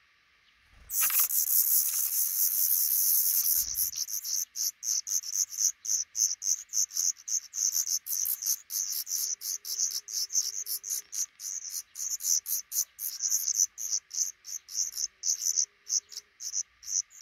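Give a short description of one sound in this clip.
Nestling birds cheep loudly and rapidly, begging close by.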